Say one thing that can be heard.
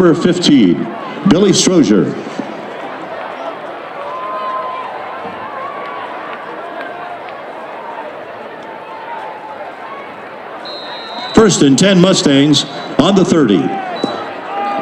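Nearby spectators, men and women, shout and cheer loudly.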